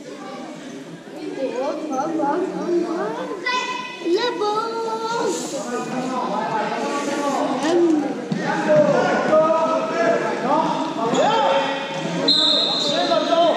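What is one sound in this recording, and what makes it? Men and women talk with animation nearby in a large echoing hall.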